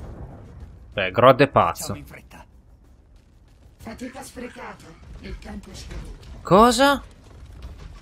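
A man speaks forcefully in a deep voice.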